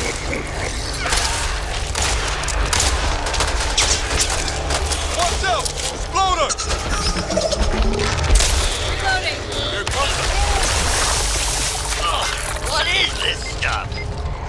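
Creatures snarl and shriek.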